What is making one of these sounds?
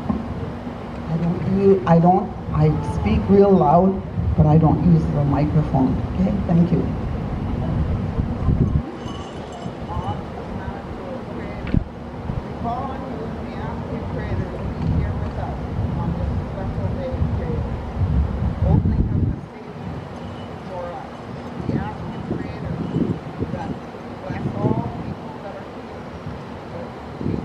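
A man speaks into a microphone, heard over loudspeakers outdoors.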